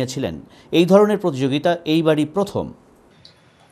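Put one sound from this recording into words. An elderly man speaks loudly close by.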